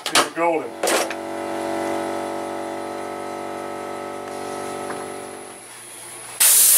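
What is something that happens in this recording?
A lawn mower engine starts and idles steadily.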